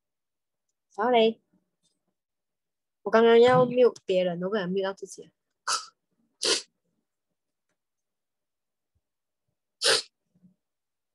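A woman speaks calmly into a microphone in short bursts.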